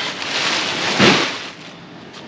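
A stuffed bag thumps down onto the floor.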